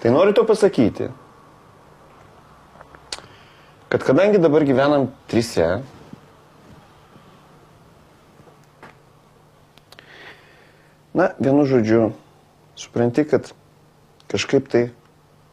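A middle-aged man speaks calmly and quietly, close by.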